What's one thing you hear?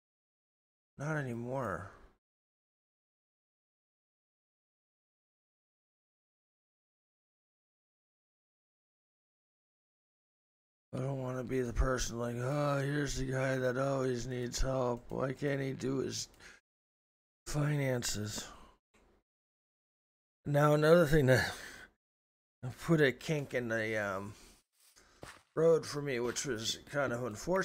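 A middle-aged man talks casually and with animation into a close microphone.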